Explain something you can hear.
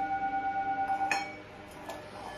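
A hand touches a singing bowl and the ringing stops abruptly.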